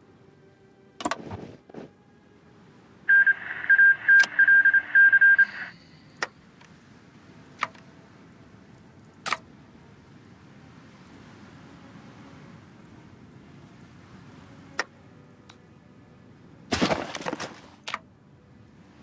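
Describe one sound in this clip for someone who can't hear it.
Game menu clicks sound now and then.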